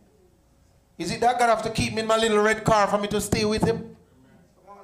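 A man calls out loudly and forcefully through a microphone.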